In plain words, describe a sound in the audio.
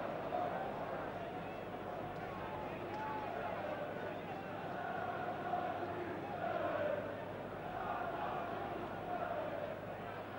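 A large stadium crowd sings and chants loudly and steadily.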